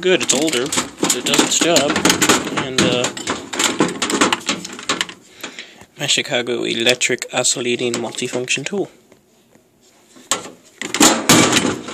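Metal power tools clunk as they are picked up and set down.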